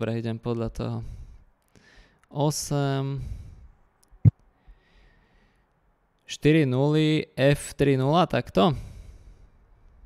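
A man speaks calmly and with pauses into a close microphone.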